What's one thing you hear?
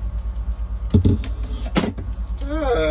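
A wooden board knocks against a surface.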